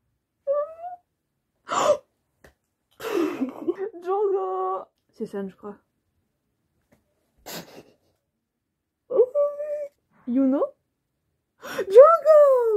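A young woman speaks excitedly and close by, in short bursts.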